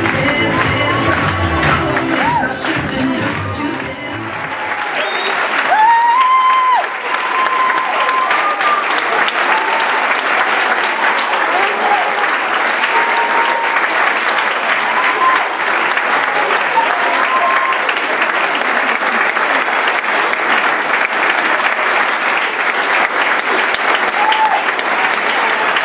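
Young people in a crowd cheer and whoop excitedly.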